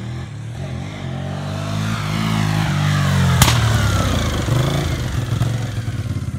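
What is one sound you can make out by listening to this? A motorcycle engine roars close by, rising in pitch as it approaches and then falling as it passes.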